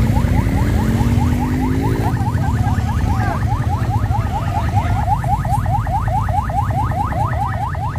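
Motorcycle engines idle and rumble nearby.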